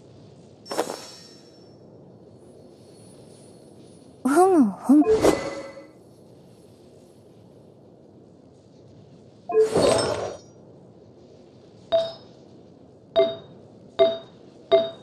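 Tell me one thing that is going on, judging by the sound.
Short chiming clicks sound as menu items are selected.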